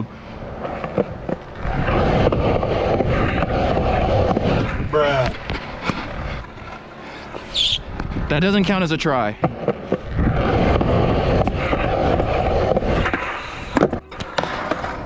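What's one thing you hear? Skateboard wheels roll over concrete.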